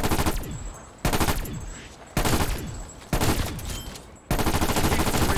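Gunshots fire in rapid, loud bursts.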